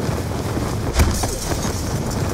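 Glass shatters and tinkles.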